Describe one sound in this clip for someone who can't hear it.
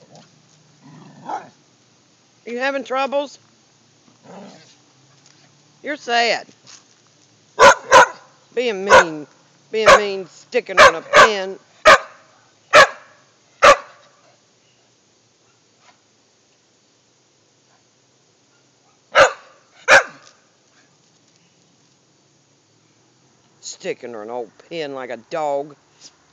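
A dog whines and yelps in a high voice.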